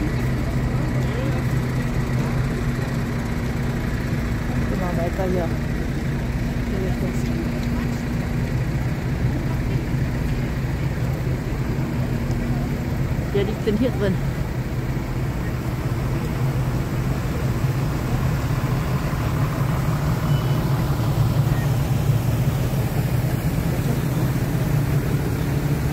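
Tractor engines idle with a steady low rumble.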